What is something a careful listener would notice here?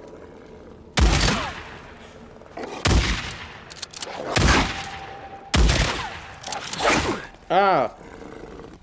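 Loud gunshots fire in quick bursts.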